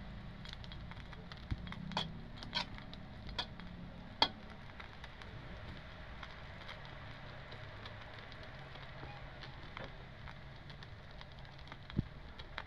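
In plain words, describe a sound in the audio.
Food sizzles and crackles softly in a hot pan.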